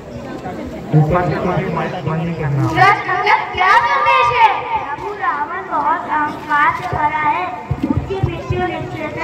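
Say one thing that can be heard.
Children sing loudly together from a stage.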